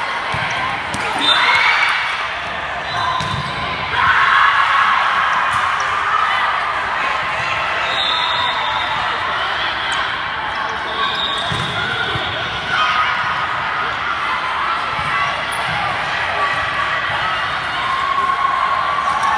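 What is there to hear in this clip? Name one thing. A ball thumps off players' hands in a large echoing gym.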